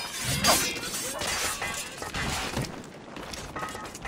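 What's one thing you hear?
Swords clash and ring in a fight.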